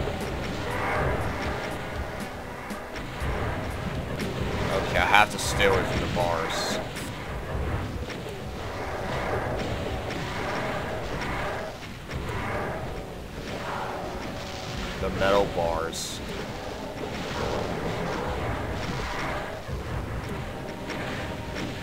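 A plasma gun fires rapid bursts.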